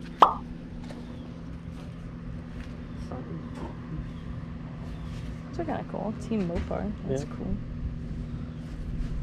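Hands rustle and handle stiff cloth hats.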